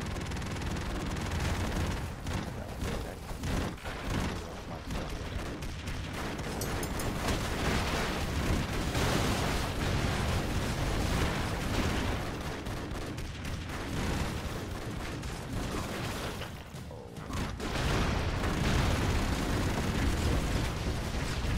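Rapid gunfire crackles and pops.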